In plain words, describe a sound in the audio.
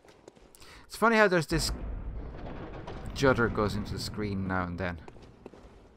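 A heavy iron gate creaks open.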